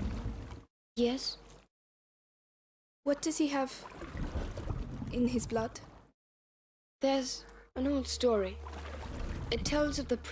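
A boy speaks tensely, close by.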